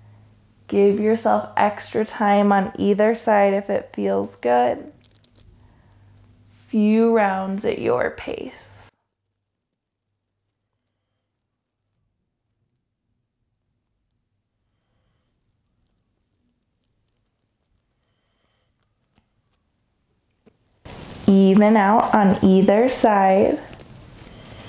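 A young woman speaks calmly and clearly into a nearby microphone.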